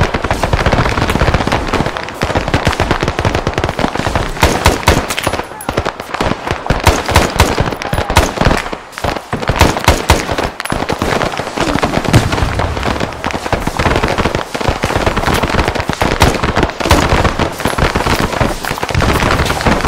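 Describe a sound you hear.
A rifle fires rapid shots in long bursts, close by.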